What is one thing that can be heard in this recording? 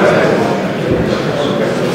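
An elderly man calls out loudly.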